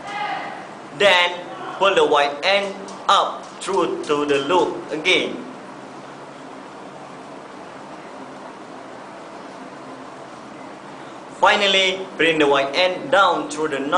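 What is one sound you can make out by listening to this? A young man speaks close by, explaining calmly.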